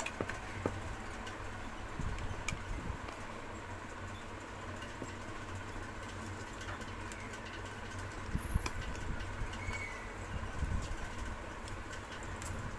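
A metal probe scrapes and taps lightly on a small circuit board.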